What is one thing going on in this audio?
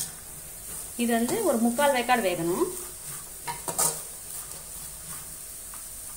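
A metal spatula scrapes and stirs food in a metal pan.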